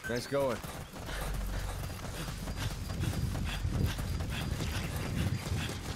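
Footsteps crunch quickly on dry dirt as someone runs.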